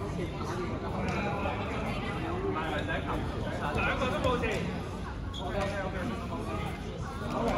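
Balls bounce on a hard floor.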